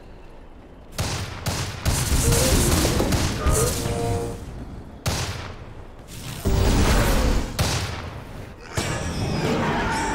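Game battle effects clash and burst in loud waves.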